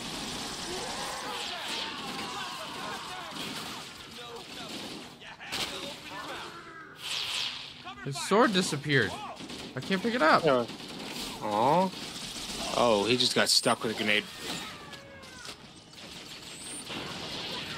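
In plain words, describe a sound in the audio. Energy weapons fire in rapid bursts with sharp zapping shots.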